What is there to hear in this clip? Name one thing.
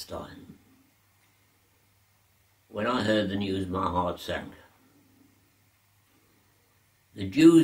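An elderly man speaks slowly and calmly close by, with long pauses.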